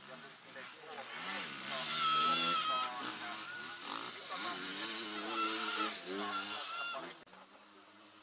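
A motorcycle engine revs loudly and then fades away.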